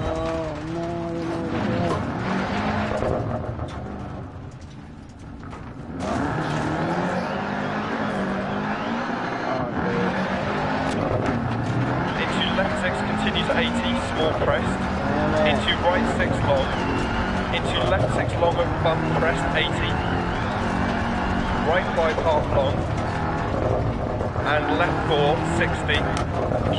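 A rally car engine revs and roars over rough ground.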